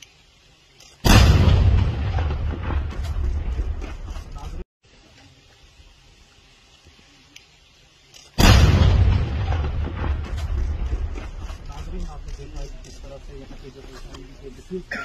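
A loud explosion booms outdoors and rumbles away.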